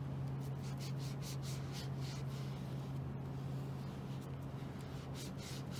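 A cloth rubs in quick strokes against a plastic lid.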